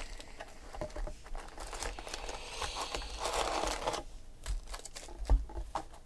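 Foil card packs crinkle and rustle.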